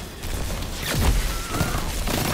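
An energy blast bursts with a crackling boom.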